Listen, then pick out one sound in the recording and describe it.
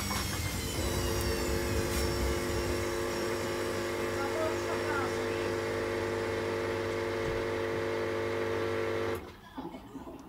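A washing machine drum spins with a steady whining hum.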